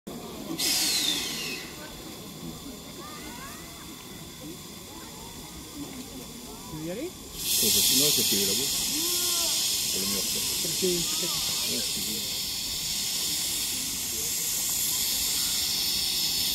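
A crowd of people chatters quietly at a distance outdoors.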